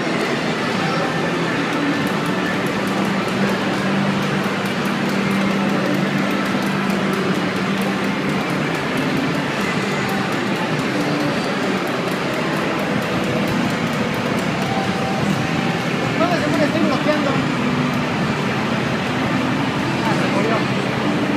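A fighting game's music and hit sounds play from a television's speakers.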